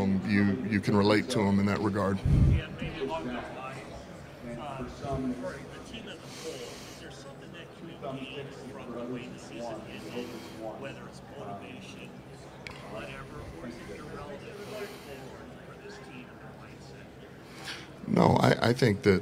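A middle-aged man speaks into a microphone, close and clear.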